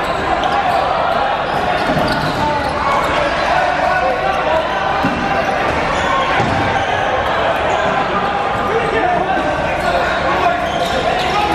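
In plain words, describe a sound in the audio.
A crowd of young players shout and call out in a large echoing gym.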